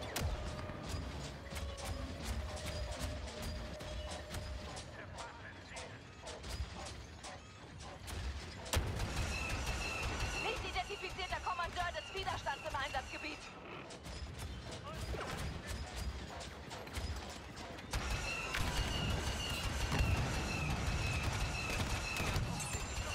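Explosions boom nearby.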